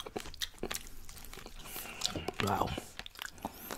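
Food crunches and rustles close to a microphone as fingers tear at it.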